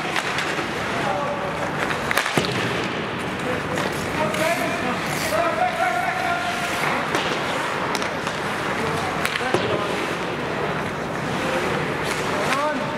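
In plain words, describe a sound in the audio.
Young men shout and call out across an echoing rink.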